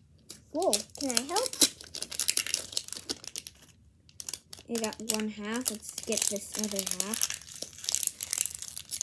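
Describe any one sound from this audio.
Foil crinkles and tears as a toy ball is unwrapped.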